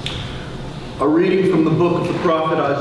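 A middle-aged man speaks into a microphone in an echoing hall.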